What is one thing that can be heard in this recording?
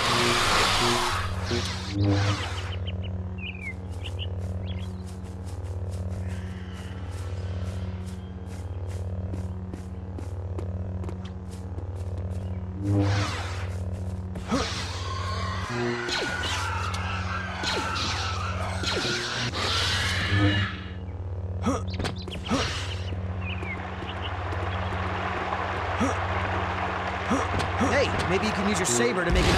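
A lightsaber hums steadily with a low drone.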